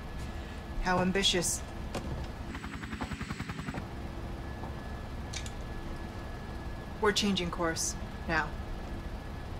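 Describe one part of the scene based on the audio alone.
A young woman speaks calmly and coolly.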